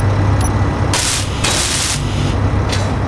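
A welding tool hisses and crackles in short bursts.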